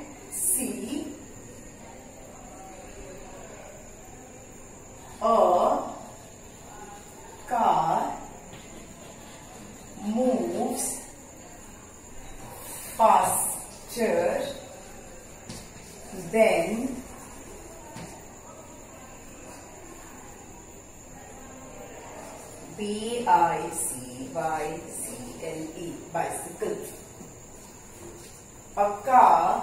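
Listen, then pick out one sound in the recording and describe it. A woman speaks clearly and slowly nearby, as if dictating.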